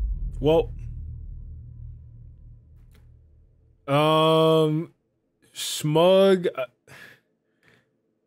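A young man exclaims loudly with animation into a microphone.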